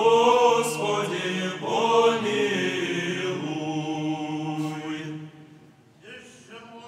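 A large choir sings loudly in a large echoing hall.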